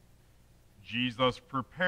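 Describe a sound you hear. A man speaks calmly into a microphone in a large, echoing room.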